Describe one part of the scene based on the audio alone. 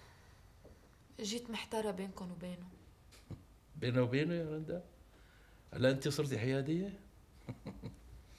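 A middle-aged man speaks with amusement nearby.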